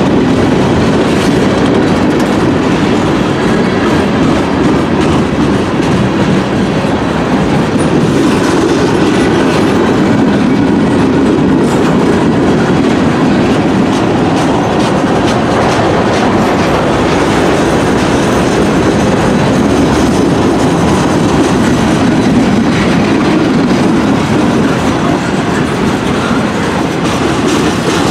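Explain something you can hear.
A freight train rumbles past close by, wheels clattering over the rails.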